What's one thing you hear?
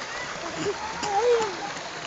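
Water splashes gently in a pool.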